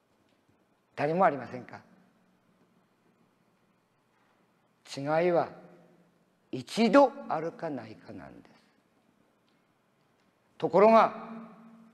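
An elderly man speaks slowly in short phrases with long pauses.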